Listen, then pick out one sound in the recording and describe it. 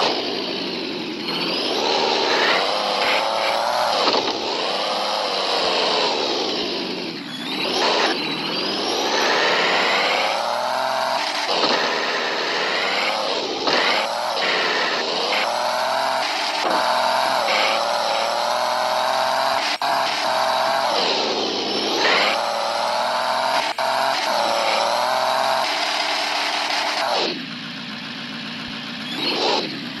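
A truck engine revs loudly, rising and falling in pitch.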